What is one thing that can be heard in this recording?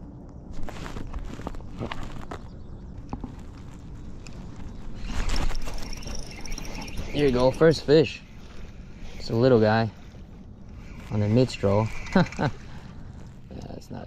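A fishing reel whirs softly as its handle is cranked.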